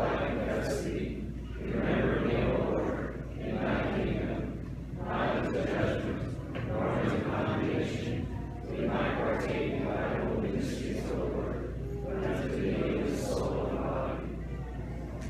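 A man recites prayers aloud in an echoing hall.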